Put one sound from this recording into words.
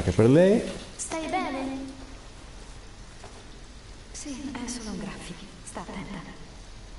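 A young woman speaks softly and anxiously.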